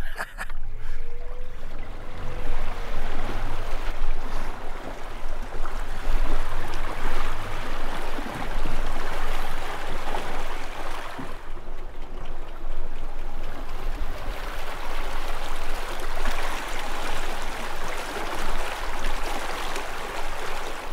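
Water churns and splashes behind a small boat.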